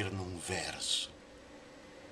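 A middle-aged man speaks briefly and calmly, close to the microphone.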